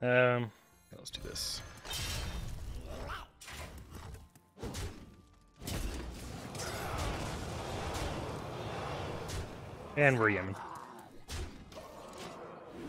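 Card game sound effects whoosh and chime.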